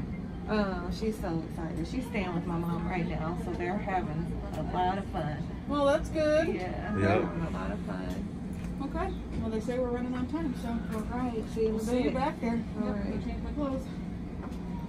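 A young woman talks calmly through a face mask, close by.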